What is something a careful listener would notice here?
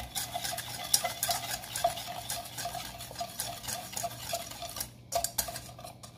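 A whisk clicks rapidly against a metal bowl.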